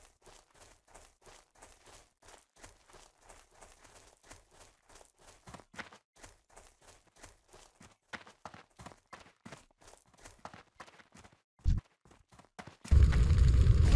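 Footsteps patter quickly and evenly on soft ground.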